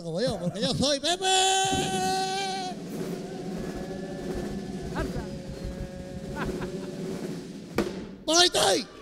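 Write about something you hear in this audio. A man sings loudly and with animation through a microphone.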